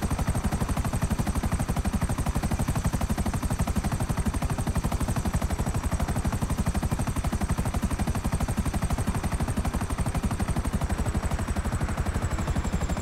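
A helicopter's rotor thumps steadily and fast overhead.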